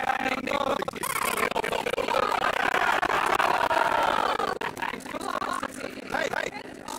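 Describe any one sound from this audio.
A crowd of men and women jeer and shout together.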